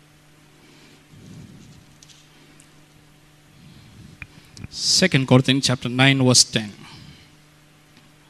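A man speaks into a microphone, heard loudly through loudspeakers, in short bursts with long pauses.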